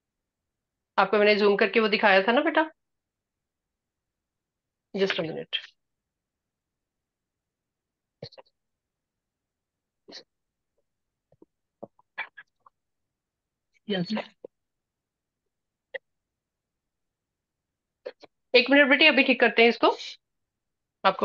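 A woman speaks calmly through a microphone over an online call.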